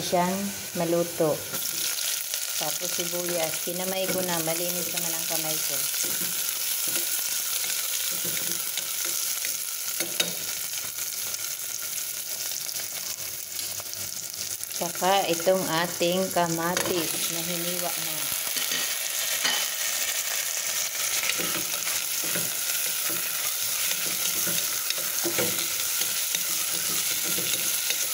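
Onions sizzle and crackle in hot oil in a pot.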